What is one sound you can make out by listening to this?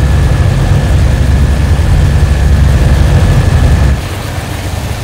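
Propeller engines drone loudly and steadily.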